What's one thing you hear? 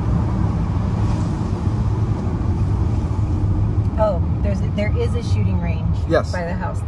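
A car engine hums low and steady while tyres roll over a road.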